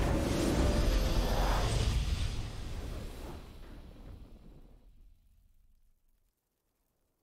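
A triumphant victory fanfare plays, then fades away.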